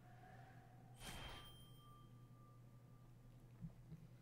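A bright game chime rings out and fades.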